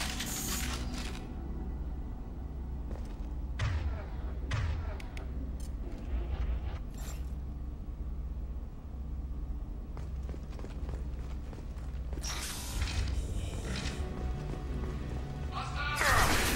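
Heavy armored footsteps thud on a metal floor.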